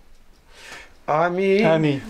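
A man nearby begins to recite a prayer loudly in a chanting voice.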